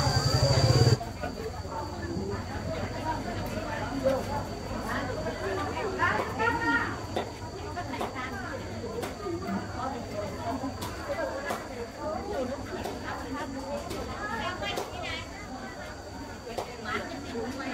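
Several women chat at a distance outdoors.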